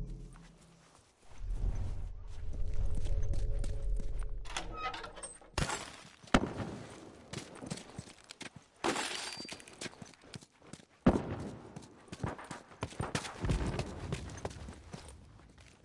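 Footsteps thud quickly over a hard floor.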